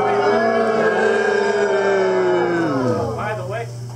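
A man calls out in a long, drawn-out shout over a loudspeaker outdoors.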